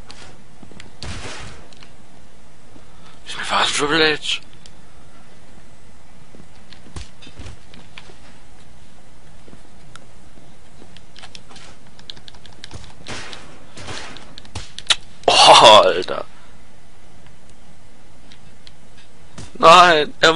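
Bodies thump heavily onto a hard floor.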